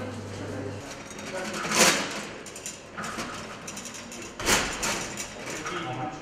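Metal containers clink and rattle close by.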